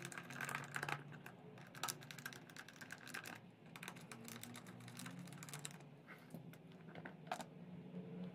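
A plastic cover rattles as hands pull it loose.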